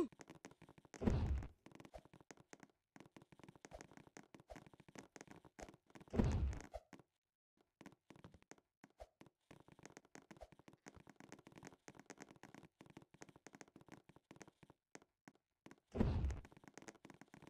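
Heavy stone blocks shift with low, dull thuds.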